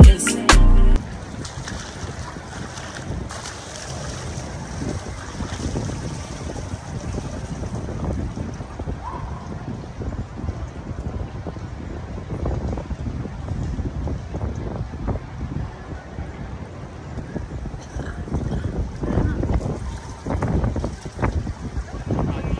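Water splashes and laps as a swimmer moves through a pool outdoors.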